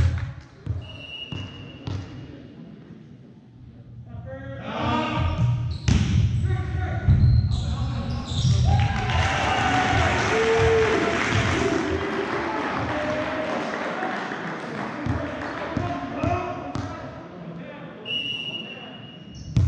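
Players' shoes squeak on a gym floor.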